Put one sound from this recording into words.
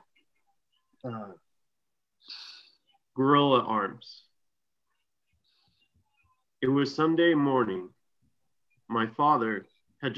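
A young man talks calmly in short bursts over an online call.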